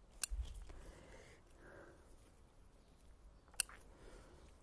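Scissors snip through leaf stems.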